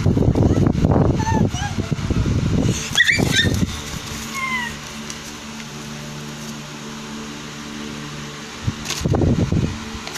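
A small child crumples and rustles paper close by.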